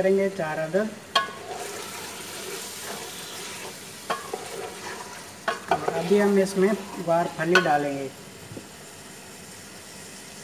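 A wooden spoon scrapes and knocks against a metal pot.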